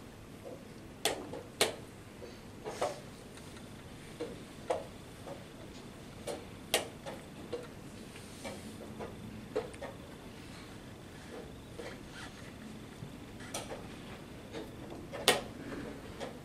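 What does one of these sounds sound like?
Chess pieces knock sharply onto wooden boards now and then.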